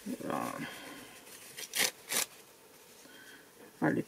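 Tissue paper rustles under a hand.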